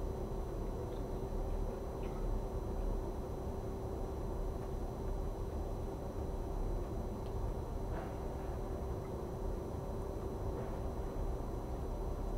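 A fork clinks softly against a plate.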